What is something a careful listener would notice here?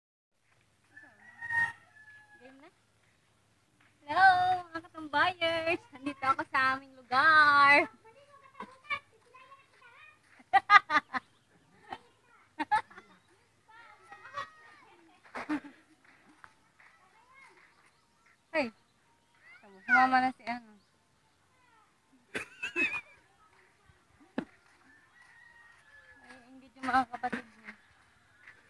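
A young woman talks and laughs with animation close by, outdoors.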